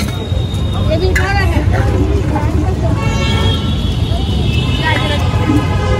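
A vendor's spoon clinks against a metal pot.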